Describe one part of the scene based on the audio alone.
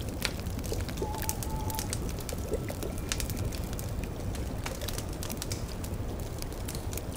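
A fire crackles and pops steadily.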